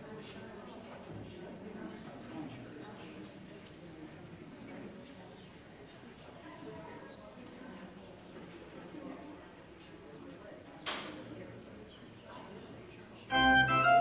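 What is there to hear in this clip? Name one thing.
A congregation murmurs softly in a large, echoing room.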